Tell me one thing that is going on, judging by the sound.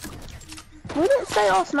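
A pickaxe strikes a wooden wall with hard knocks.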